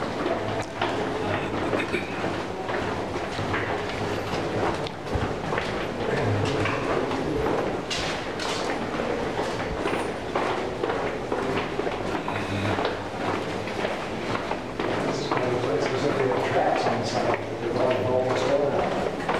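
Footsteps shuffle along a hard walkway in an echoing tunnel.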